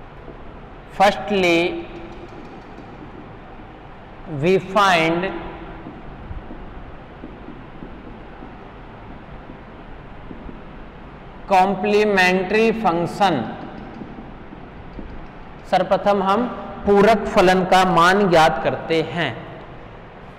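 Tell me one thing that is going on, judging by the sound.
A young man speaks calmly, as if teaching.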